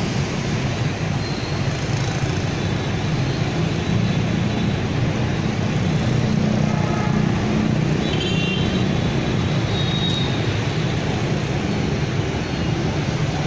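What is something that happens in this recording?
Motorbike engines drone and buzz as they pass.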